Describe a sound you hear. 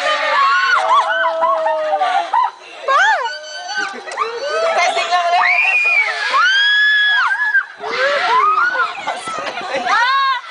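Young riders scream with excitement close by.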